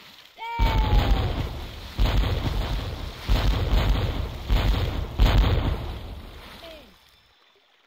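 Cannons boom in quick succession.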